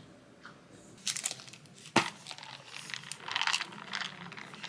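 A straw scrapes and rattles inside a plastic cup.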